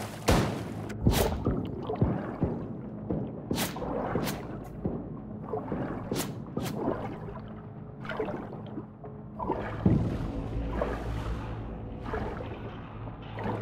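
Water bubbles and gurgles underwater.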